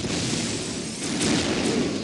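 An energy weapon fires with a crackling buzz.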